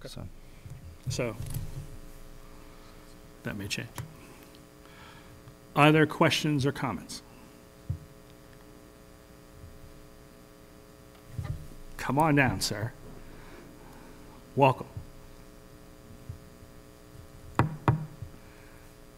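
A man speaks through a microphone in short bursts, with pauses, in a large room.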